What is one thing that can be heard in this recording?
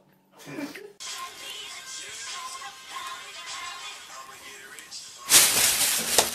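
A plastic bag rustles and crinkles as a cat pushes into it.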